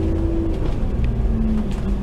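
A tram rolls past on its rails.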